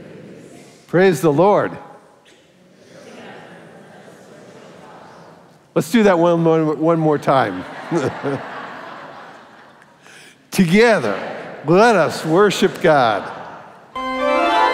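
An elderly man speaks loudly and with animation through a microphone in a large echoing hall.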